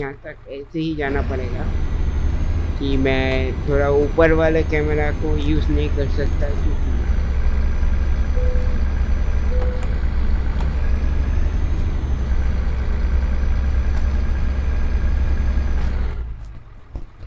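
A heavy bus engine rumbles low and steadily.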